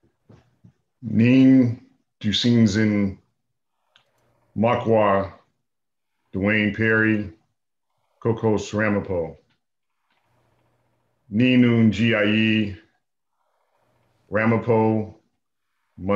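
A man speaks calmly in short phrases over an online call, with pauses between them.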